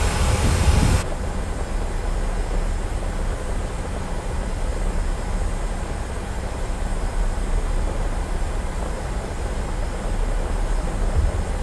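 A jet airliner's engines hum low and muffled from inside the cockpit.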